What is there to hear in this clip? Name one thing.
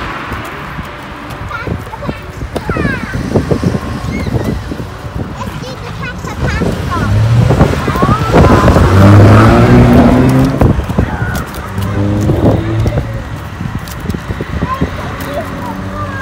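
Footsteps patter on a pavement.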